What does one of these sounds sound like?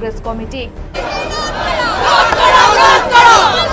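A crowd of men and women shouts slogans together outdoors.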